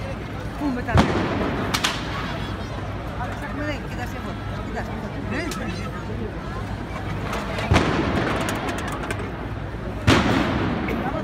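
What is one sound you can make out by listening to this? Fireworks bang loudly a few times.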